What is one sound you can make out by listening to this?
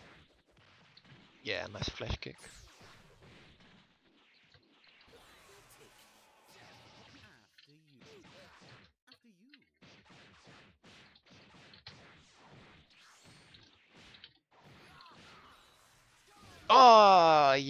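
Punches and kicks land with quick, sharp hits.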